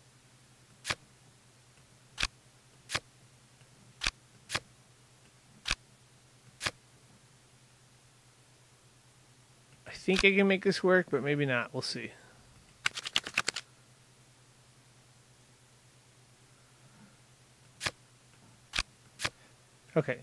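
Playing cards snap into place with short, sharp clicks.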